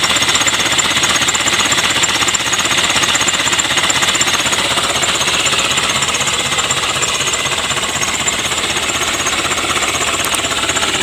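A vehicle engine runs steadily close by.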